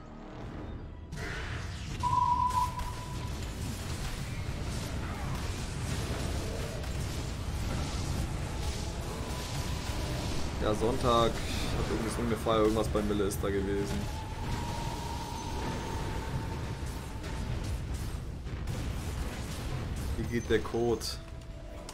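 Game battle effects clash and rumble steadily.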